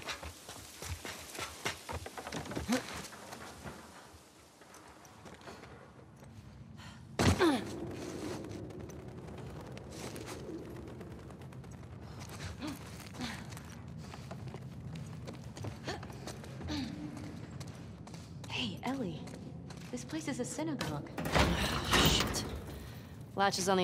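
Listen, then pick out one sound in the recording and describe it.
Footsteps tread on a hard floor.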